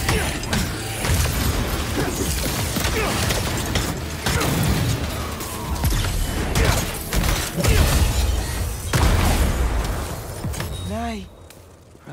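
Loud blasts and impacts crash in quick succession.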